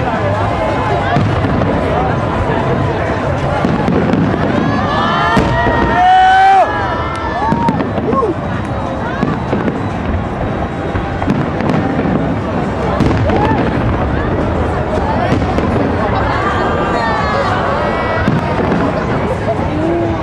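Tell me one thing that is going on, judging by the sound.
Fireworks boom and crackle in the distance.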